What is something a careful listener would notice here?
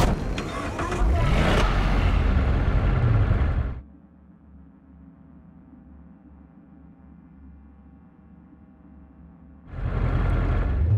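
A truck engine starts up and rumbles loudly.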